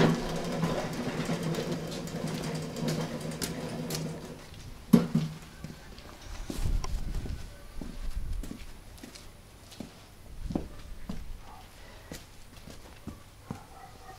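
Footsteps crunch and thud on paving and soil.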